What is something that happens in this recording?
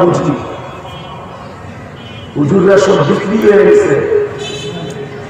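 An elderly man preaches forcefully into a microphone, heard through loudspeakers.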